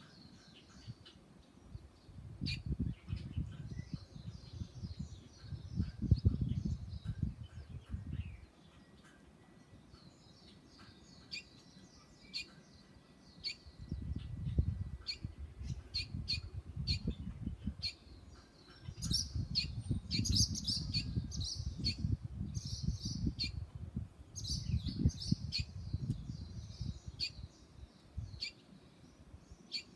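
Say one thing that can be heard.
A small bird chirps and twitters close by.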